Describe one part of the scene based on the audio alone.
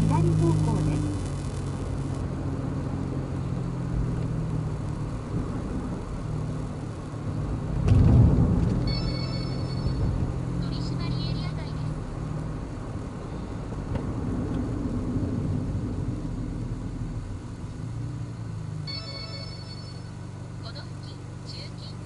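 A car engine hums steadily from inside the car as it drives along a road.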